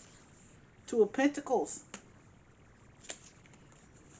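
A card taps softly down onto a cloth.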